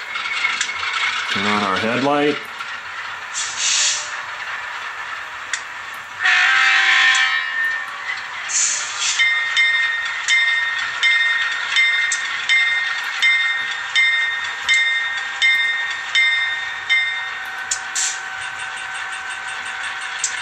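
A small model locomotive's speaker plays a diesel engine idling steadily.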